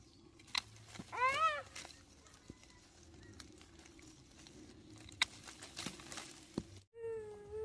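Pruning shears snip sharply through stems.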